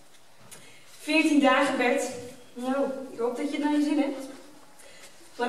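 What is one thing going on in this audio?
A woman speaks with expression on a stage in a large hall, heard from the audience.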